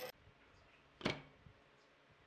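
A stack of thin wooden strips is set down on a wooden bench with a knock.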